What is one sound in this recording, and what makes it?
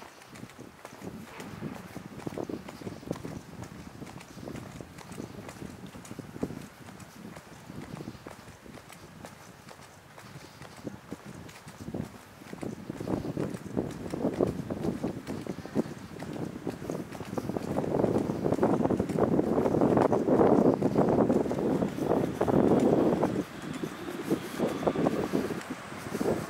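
Footsteps walk steadily along a paved pavement outdoors.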